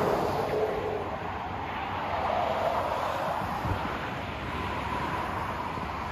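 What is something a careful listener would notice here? Traffic hums steadily on a road below.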